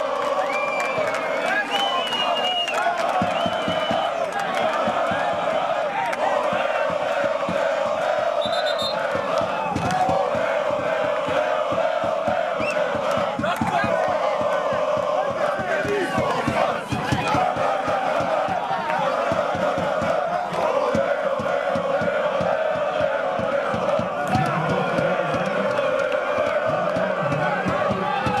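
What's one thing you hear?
A large crowd of fans chants and cheers loudly outdoors.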